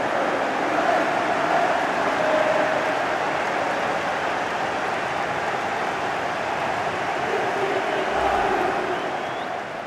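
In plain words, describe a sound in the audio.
A large stadium crowd roars and cheers steadily.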